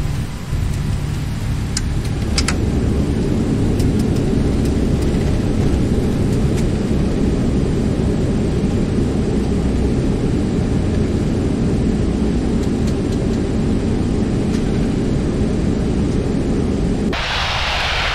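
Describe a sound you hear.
A jet airliner rumbles deeply as it speeds down a runway.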